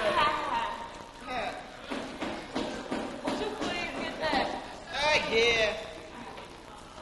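A woman speaks with animation, heard from a distance.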